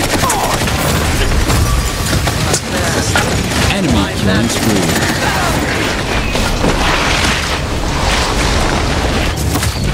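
Gunfire and magic blasts crackle rapidly.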